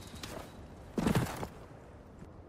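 A heavy thump sounds as someone lands from a drop.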